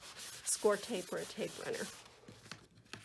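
A cloth rubs briskly over a card.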